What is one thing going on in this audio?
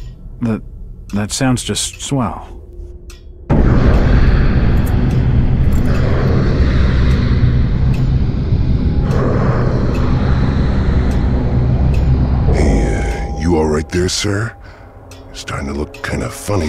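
A man speaks hesitantly, close by.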